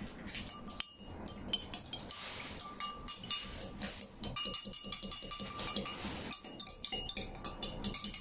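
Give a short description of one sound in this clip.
A spoon stirs water in a glass.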